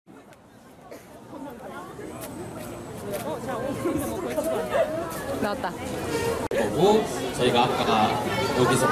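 A crowd of young people chatters and calls out excitedly nearby, outdoors.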